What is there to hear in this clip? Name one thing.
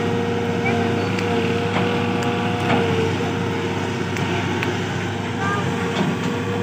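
Soil and clods tumble from an excavator bucket.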